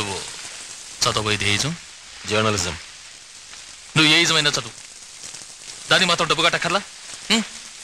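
An elderly man speaks calmly at close range.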